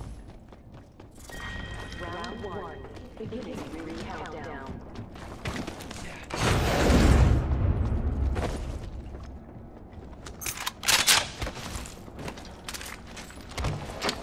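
Footsteps thud quickly across a metal floor.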